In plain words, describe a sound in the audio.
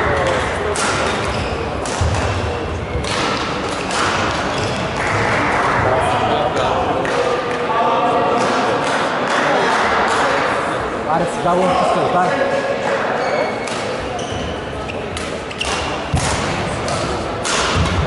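Rackets strike a shuttlecock in sharp smacks.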